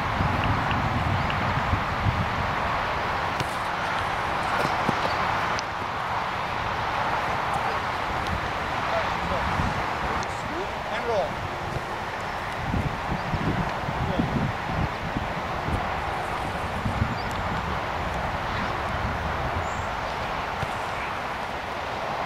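Wind blows steadily across an open field outdoors.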